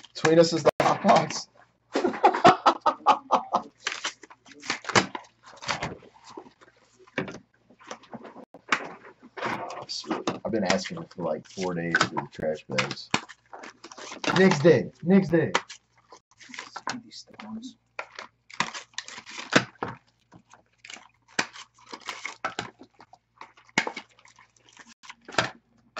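Foil wrappers crinkle and rustle as card packs are torn open.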